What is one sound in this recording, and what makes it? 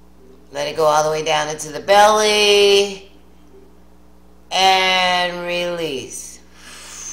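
An older woman sings expressively close to a microphone, holding long notes.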